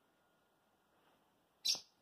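A dog tugs and chews on a cloth toy.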